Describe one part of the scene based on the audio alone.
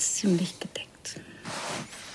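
A man chuckles softly close by.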